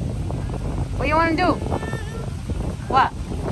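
A toddler squeals in a high-pitched voice close by.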